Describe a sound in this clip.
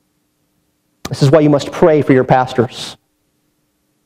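A man speaks with emphasis into a microphone.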